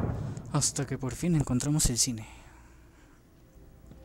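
A heavy door swings shut.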